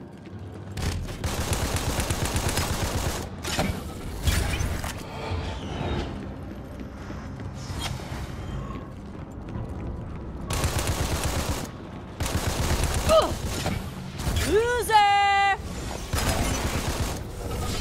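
A rapid-fire energy gun shoots in quick bursts.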